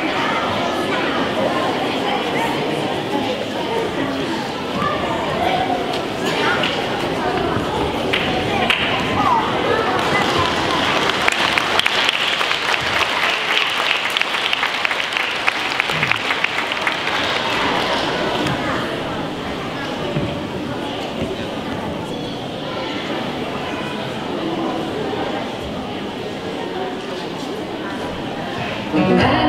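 Children chatter and murmur in an echoing hall.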